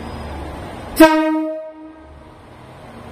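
A train horn sounds one short, loud blast.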